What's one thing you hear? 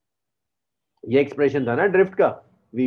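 A young man speaks calmly into a microphone, as if over an online call.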